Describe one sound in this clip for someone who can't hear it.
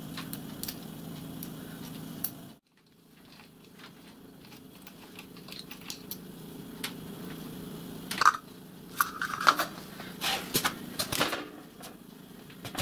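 Metal parts click and clank as they are handled.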